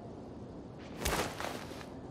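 An arm swings quickly through the air with a brief whoosh.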